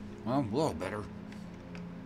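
A man speaks briefly with animation, close to a microphone.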